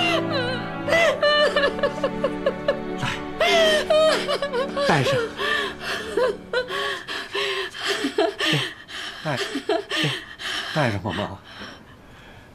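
An elderly woman sobs and wails close by.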